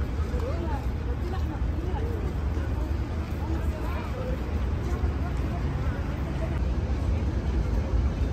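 Many people talk at a distance, their voices mixing into a murmur outdoors.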